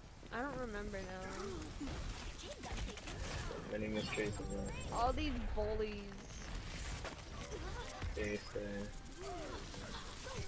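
A video game ice gun hisses as it sprays a freezing stream.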